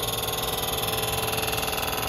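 A milling machine whirs steadily.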